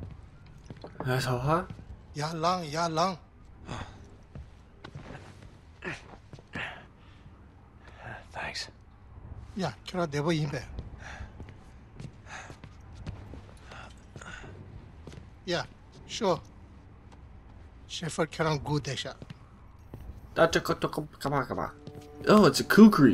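A man speaks with animation in another language.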